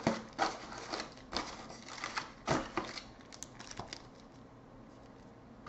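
Cardboard packs rustle and tap as hands pull them from a box.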